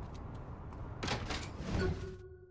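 A glass door swings open with a whoosh.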